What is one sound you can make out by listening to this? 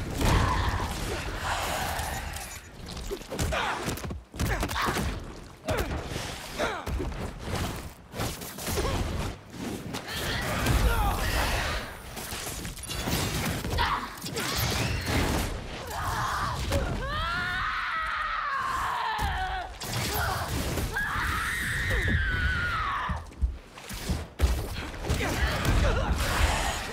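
Heavy blows thud and crack again and again in a fight.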